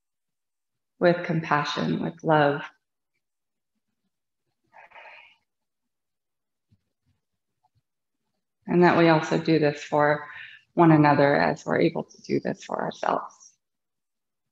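A woman speaks calmly and softly into a close microphone.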